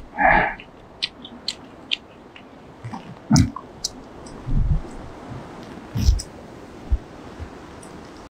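Puppies chew and lick food on the ground.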